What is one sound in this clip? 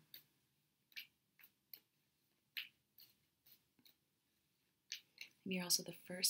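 Playing cards shuffle with soft riffling clicks.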